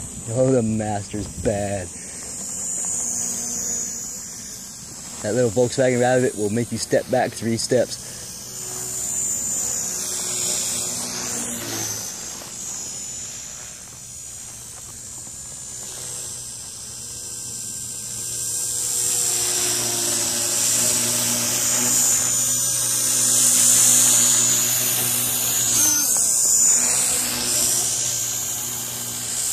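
A model helicopter's motor whines loudly overhead, rising and falling in pitch.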